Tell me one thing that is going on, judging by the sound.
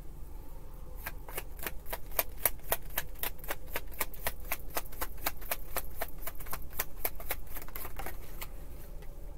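Playing cards riffle and click rapidly as they are shuffled.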